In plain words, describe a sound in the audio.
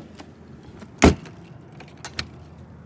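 A door latch clicks shut.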